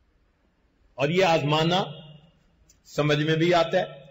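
An elderly man speaks calmly into a clip-on microphone.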